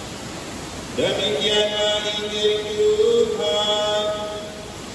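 A man chants in a sustained voice through a microphone.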